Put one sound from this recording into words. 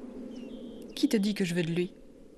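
A second young woman answers quietly.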